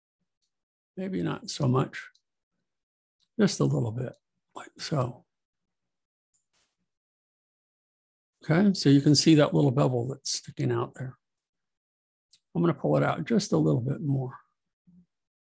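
A middle-aged man talks calmly into a close microphone, in short phrases with pauses.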